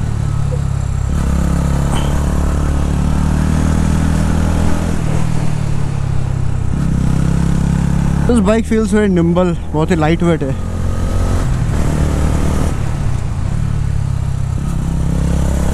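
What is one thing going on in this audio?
A motorcycle engine hums steadily at a low pitch while riding.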